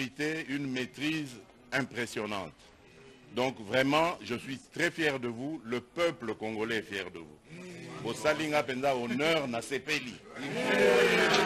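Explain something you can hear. A man speaks into a microphone in a calm, measured voice.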